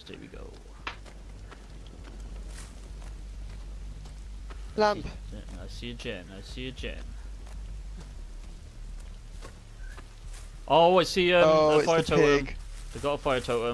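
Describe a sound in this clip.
Footsteps crunch over soft ground outdoors.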